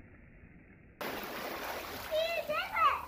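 Water splashes loudly.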